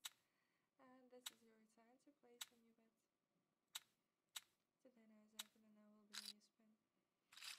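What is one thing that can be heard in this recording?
A young woman speaks calmly and warmly through a microphone.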